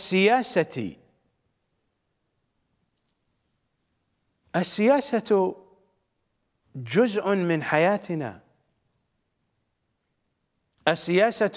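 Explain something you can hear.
A middle-aged man speaks with emphasis into a microphone, pausing between phrases.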